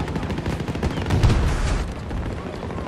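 An explosion booms close by.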